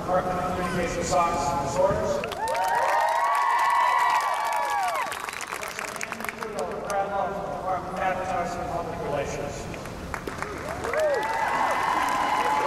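An elderly man speaks calmly into a microphone, heard through loudspeakers in a large echoing hall.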